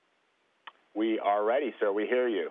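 A man speaks calmly through a radio link.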